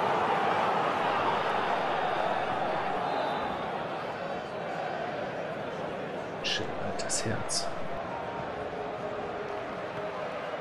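A football is kicked across a pitch.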